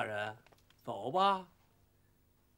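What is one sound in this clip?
A man speaks firmly at close range.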